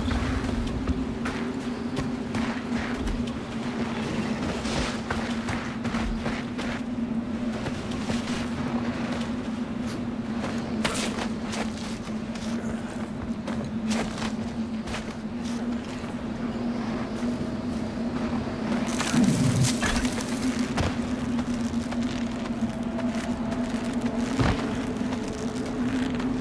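Wind blows steadily outdoors in a snowstorm.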